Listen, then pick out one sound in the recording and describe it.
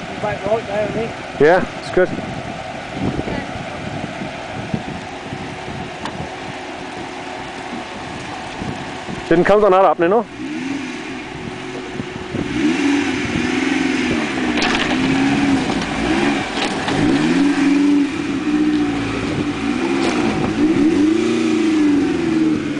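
An off-road vehicle's engine idles and revs up and down in bursts.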